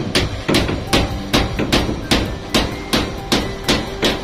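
A hammer knocks on wood in sharp blows.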